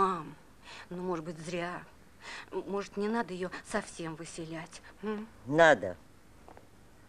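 An elderly woman speaks.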